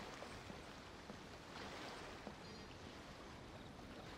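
Footsteps tap on wooden boards.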